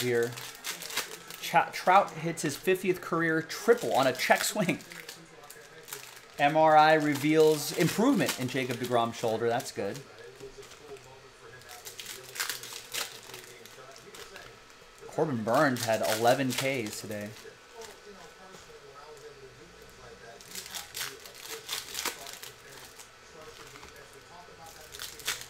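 Foil wrappers crinkle and tear as packs are opened.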